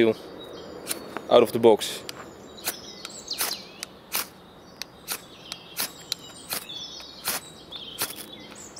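A knife blade scrapes against a ferro rod in short, repeated strokes.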